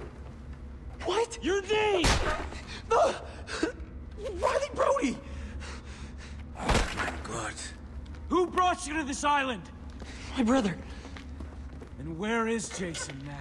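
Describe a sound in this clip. A young man speaks nervously and haltingly, close by.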